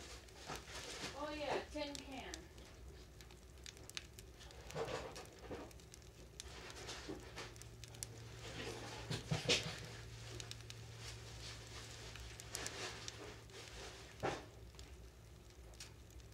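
A wood fire crackles and pops in a stove.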